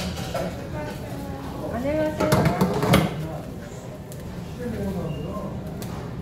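Metal tongs click against a plate.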